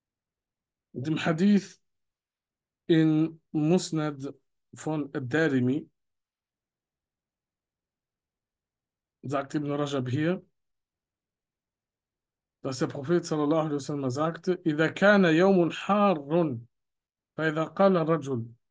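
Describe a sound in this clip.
A man speaks calmly into a close microphone, reading out in short phrases with pauses.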